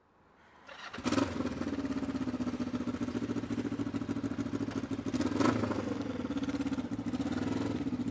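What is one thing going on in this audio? A motorcycle engine idles with a steady, pulsing rumble close by.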